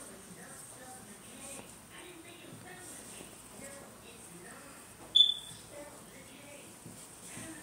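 A woman speaks quietly and close to the microphone.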